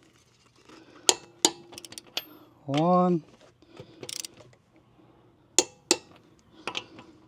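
A wrench clicks against lug nuts.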